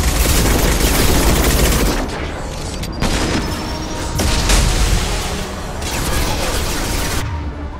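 An energy blast crackles and hums.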